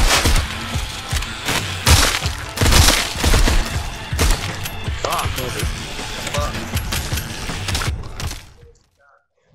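Pistol shots fire rapidly in bursts.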